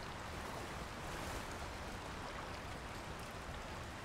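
Water churns and splashes below.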